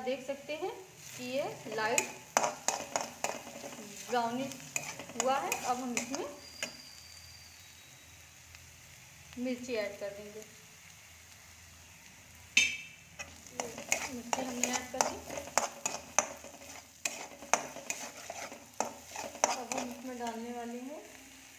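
A metal spatula scrapes and knocks against a frying pan.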